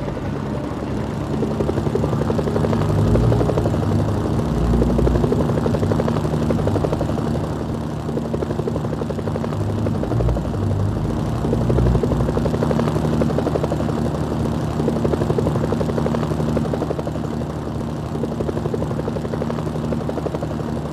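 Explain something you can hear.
A helicopter's rotor blades thump steadily and loudly.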